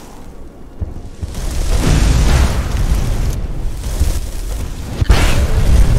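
Magic crackles and hums loudly.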